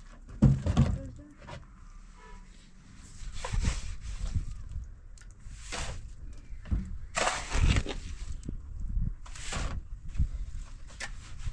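A shovel scrapes and taps in wet mortar.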